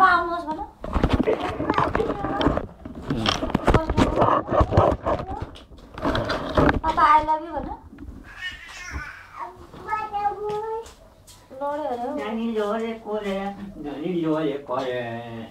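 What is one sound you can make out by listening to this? A small child babbles and vocalizes close by.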